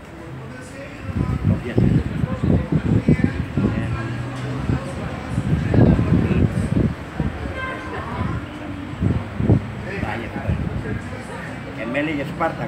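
An elderly man talks animatedly up close.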